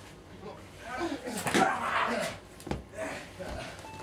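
A wrestler's body thuds onto a padded mat.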